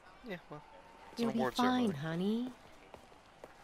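A woman speaks softly and warmly, close by.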